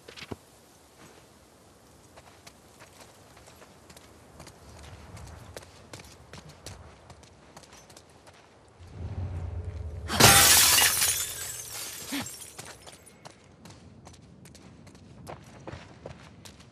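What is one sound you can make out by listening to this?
Footsteps patter on wet ground.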